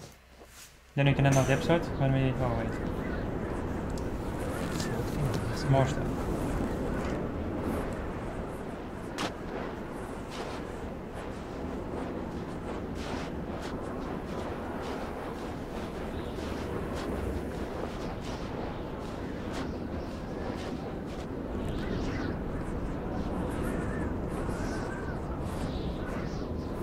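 A strong wind howls through a blizzard.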